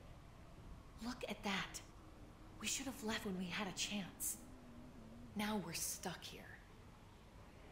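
A young woman speaks with alarm.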